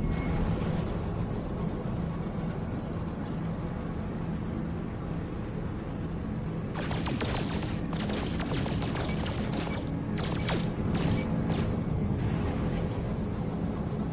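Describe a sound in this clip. A spaceship engine hums with a low, steady drone.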